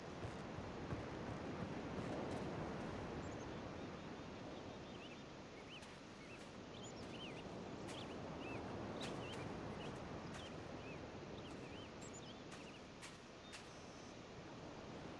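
Sea waves wash steadily against rocks nearby.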